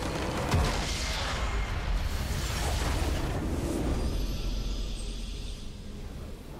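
A large structure explodes with a deep, rumbling blast.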